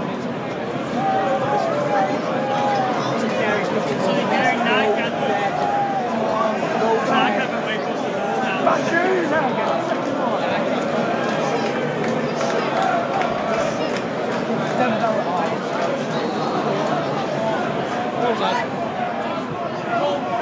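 A large stadium crowd roars and murmurs throughout.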